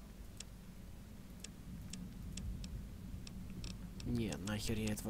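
Short, sharp menu clicks sound again and again.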